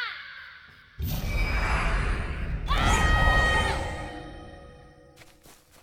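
A magical spell whooshes and rings out with a shimmering tone.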